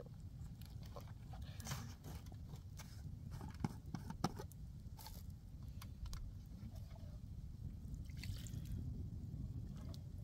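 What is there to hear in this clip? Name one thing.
A plastic jug knocks and crinkles as it is handled.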